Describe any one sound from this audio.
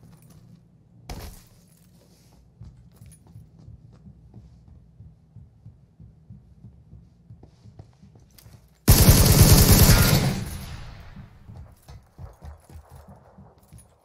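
Footsteps thud softly on a wooden roof.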